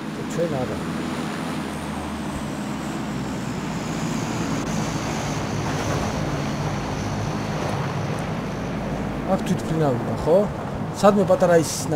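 A car engine roars steadily as the car drives over rough ground.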